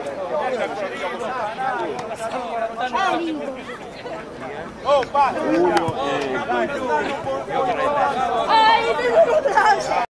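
A group of men shout and cheer loudly outdoors.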